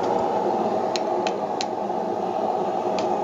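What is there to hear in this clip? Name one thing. A hammer rings sharply on hot metal on an anvil.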